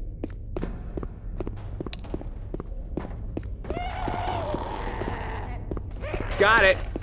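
Footsteps tap steadily on a hard floor.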